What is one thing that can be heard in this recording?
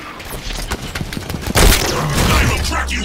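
Gunfire blasts in a video game.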